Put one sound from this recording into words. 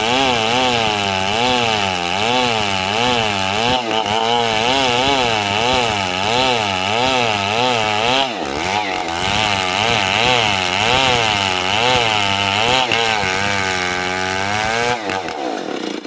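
A chainsaw revs under load, ripping lengthwise through a hardwood beam.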